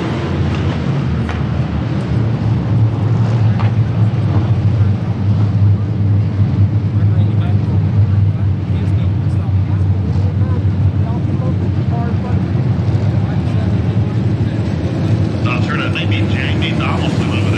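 Loud race car engines roar and drone steadily as a pack of cars laps a dirt track outdoors.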